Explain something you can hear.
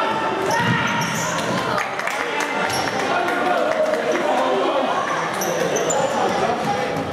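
Shoes squeak sharply on a wooden floor.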